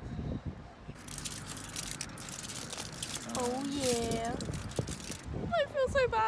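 Aluminium foil crinkles and rustles.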